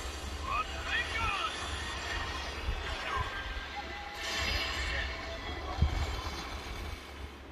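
Battle effects crash and whoosh through a small speaker.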